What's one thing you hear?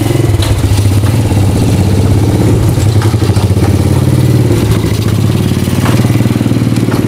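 A small motorcycle engine putters steadily close by.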